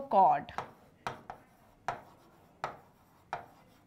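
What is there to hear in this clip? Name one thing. A marker taps on a board while writing.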